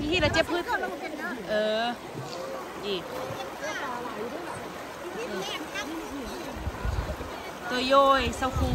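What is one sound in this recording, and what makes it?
A shallow river rushes and splashes steadily.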